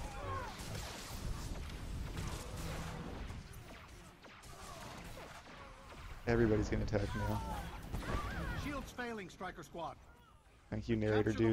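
Energy weapons zap and crackle in a fast battle.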